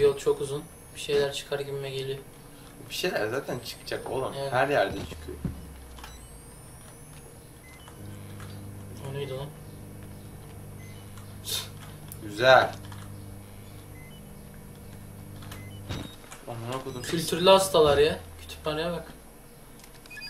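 Two young men talk and react with animation into a microphone close by.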